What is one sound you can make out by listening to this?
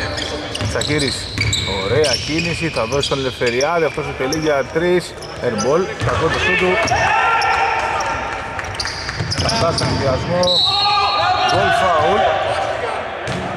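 Basketball shoes squeak on a hardwood court in a large echoing arena.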